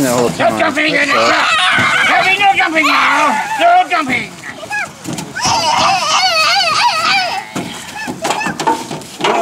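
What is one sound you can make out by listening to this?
Young children talk and squeal in high voices close by.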